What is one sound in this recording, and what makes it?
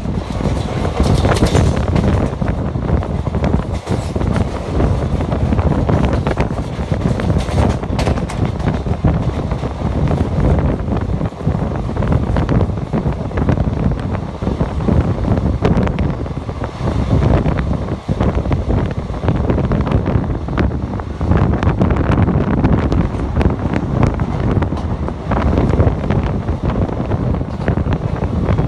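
A passenger train rumbles and clatters over rail joints, heard from an open door.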